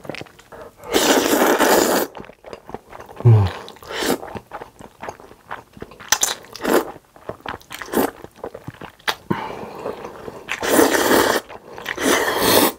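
A man slurps noodles loudly, close to a microphone.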